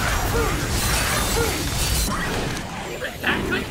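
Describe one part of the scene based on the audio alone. An icy blast bursts and crackles loudly.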